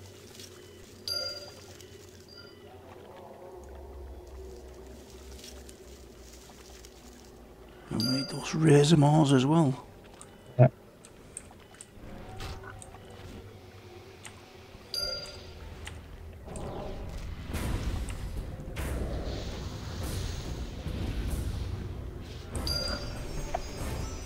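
Game chimes ring out.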